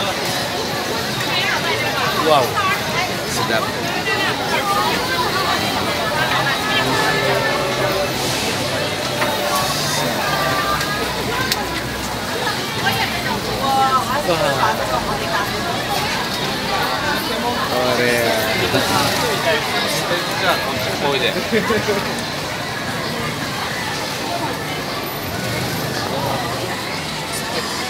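A busy crowd chatters all around outdoors.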